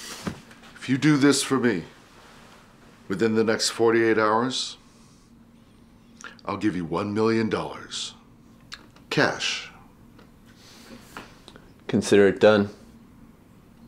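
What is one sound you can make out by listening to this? Men speak calmly and quietly nearby, taking turns.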